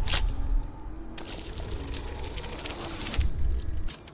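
A die clatters and rattles as it rolls.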